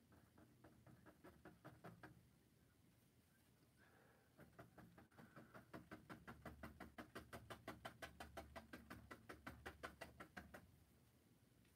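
A paintbrush taps and dabs rapidly against a canvas.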